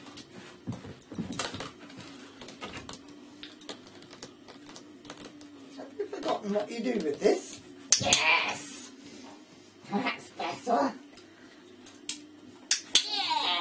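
A dog's claws tap on a hard floor.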